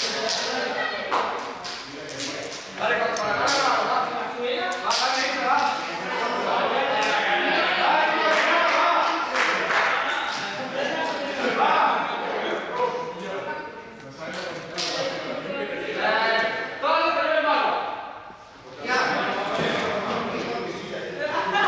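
Many teenagers chatter and shout in a large echoing hall.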